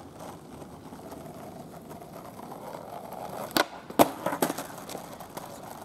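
Skateboard wheels roll on rough asphalt.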